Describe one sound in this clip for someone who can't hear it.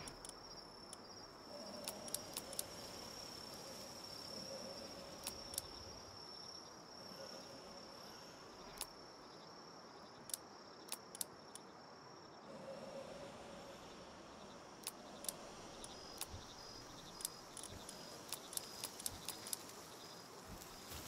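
Soft interface clicks tick repeatedly.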